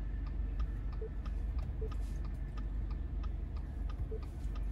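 A touchscreen gives short beeps when pressed.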